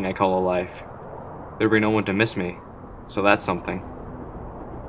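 A young man speaks briefly outdoors.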